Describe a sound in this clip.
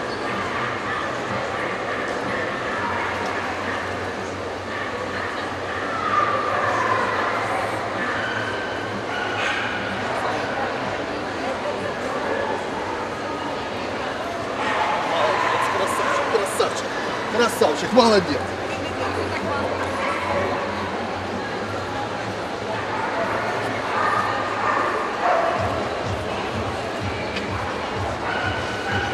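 A crowd chatters in a large echoing hall.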